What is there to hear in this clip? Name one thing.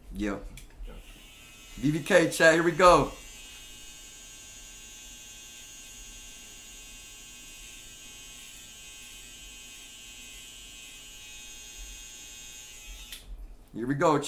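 Electric hair clippers buzz steadily.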